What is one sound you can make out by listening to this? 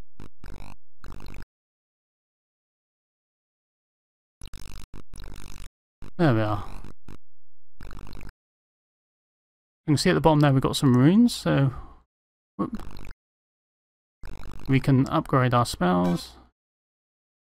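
Retro computer game sound effects buzz and beep in short bursts.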